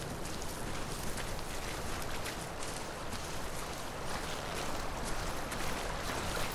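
Footsteps crunch on grass and stones.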